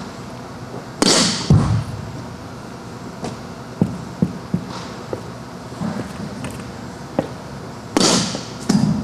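A bat strikes a softball with a sharp crack in an echoing hall.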